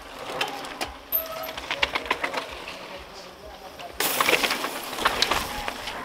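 A bicycle rolls over a dirt trail.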